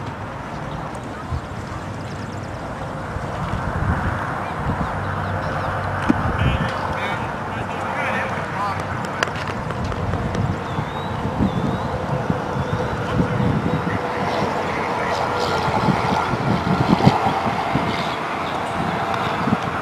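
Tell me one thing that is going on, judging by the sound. Young players chatter and cheer from nearby, outdoors.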